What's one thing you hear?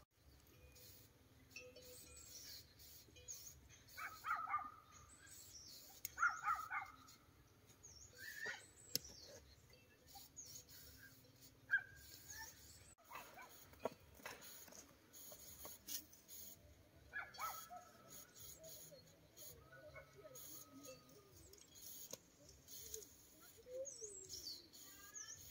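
A hand tool scrapes and taps in dry soil.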